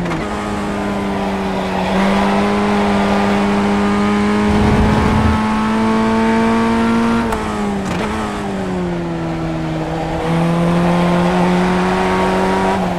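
A racing car engine drones steadily, rising in pitch through the gears and dropping when slowing for a bend.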